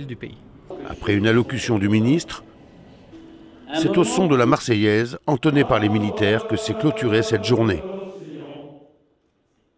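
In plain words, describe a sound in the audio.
A man gives a speech through loudspeakers to a large crowd.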